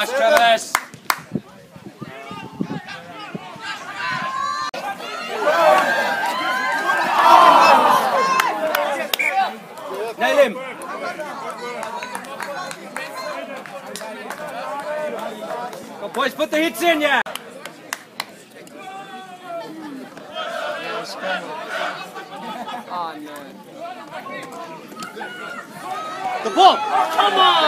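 Young men talk nearby among the spectators.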